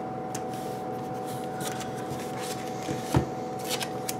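A page of a spiral notebook flips over.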